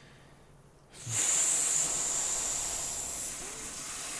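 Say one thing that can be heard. Wind howls outdoors.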